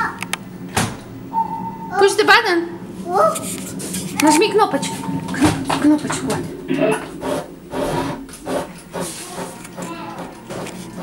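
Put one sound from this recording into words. A small child presses and bangs on buttons with sharp clicks and knocks.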